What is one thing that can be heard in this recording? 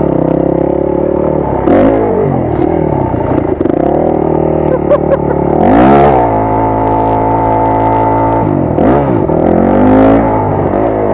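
A dirt bike engine roars close by, revving up and down.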